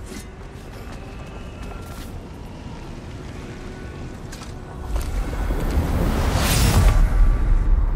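A magical shimmer sparkles and swells.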